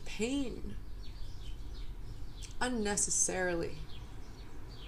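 A young woman speaks calmly and close up, in short phrases.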